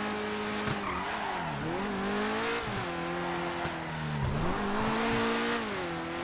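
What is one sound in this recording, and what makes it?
Car tyres squeal through a bend.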